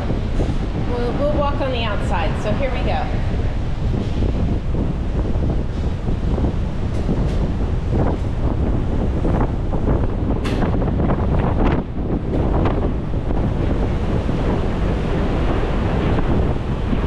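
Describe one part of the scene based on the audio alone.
Sea water churns and rushes below.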